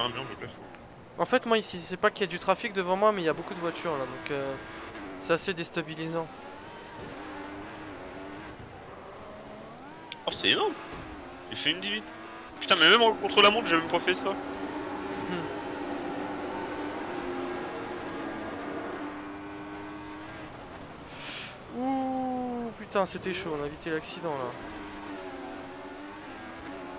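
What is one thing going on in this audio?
A racing car engine whines loudly, rising in pitch as it accelerates and dropping as it slows.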